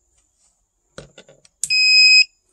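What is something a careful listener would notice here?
Plastic cable plugs click and rattle as they are handled.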